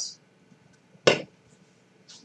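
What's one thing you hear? A metal can is set down on a table with a knock.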